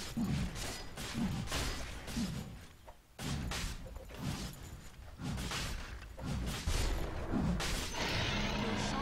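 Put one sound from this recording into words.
Fighting sounds and spell blasts from a video game crackle and burst.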